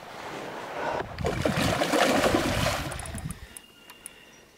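Water splashes loudly as a fish breaks the surface.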